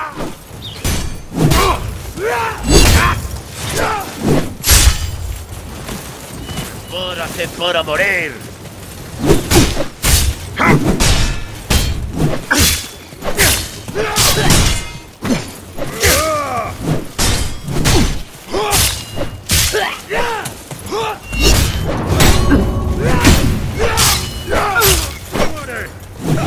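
Swords clash and strike repeatedly in a fierce fight.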